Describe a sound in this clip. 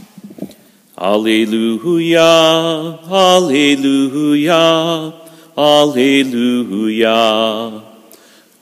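A man sings into a microphone, his voice echoing in a large hall.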